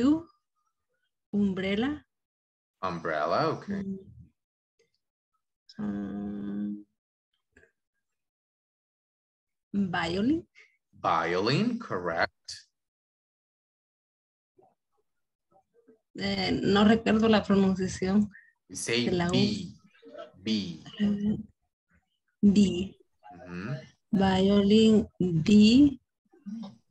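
A young woman speaks calmly in short phrases over an online call, with pauses in between.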